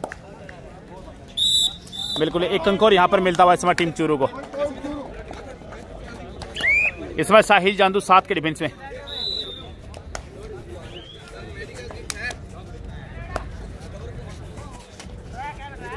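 A crowd murmurs and calls out in the distance outdoors.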